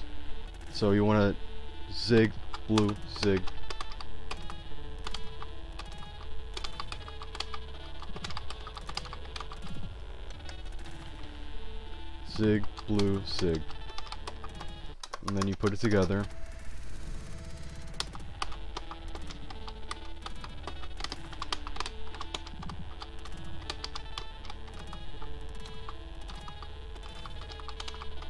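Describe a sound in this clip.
Fast rock guitar music plays.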